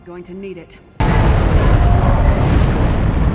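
A loud magical roar rumbles steadily.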